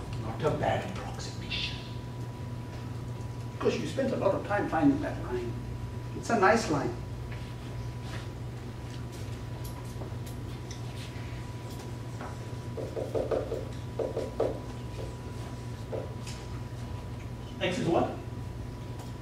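A man speaks calmly, with pauses.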